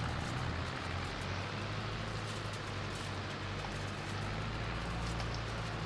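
A hay rake rattles and whirs behind a tractor.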